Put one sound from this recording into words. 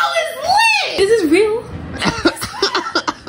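A young woman talks excitedly up close.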